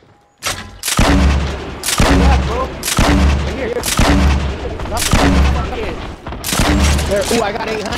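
Gunshots boom in a quick, steady series.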